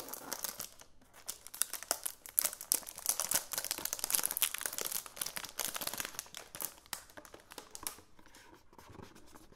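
A cardboard box taps and scrapes against fingers.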